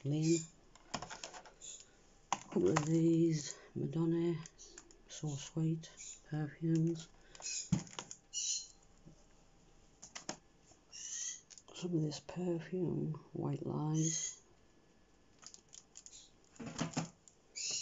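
Cardboard boxes rustle and tap as they are handled and set down.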